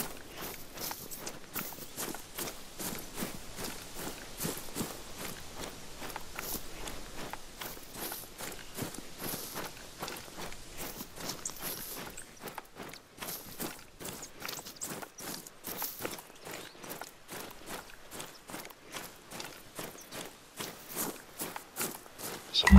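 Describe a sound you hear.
Footsteps rustle steadily through dry grass.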